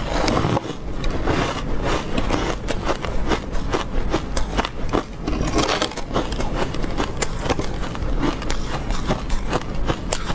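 Frozen food crackles and rustles as a young woman's fingers break pieces off.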